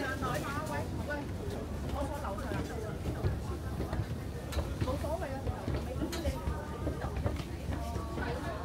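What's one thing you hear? Footsteps thud on metal stairs.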